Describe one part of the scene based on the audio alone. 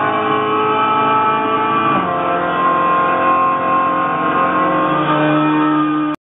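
A racing car engine roars at high revs, dropping in pitch as it shifts gear.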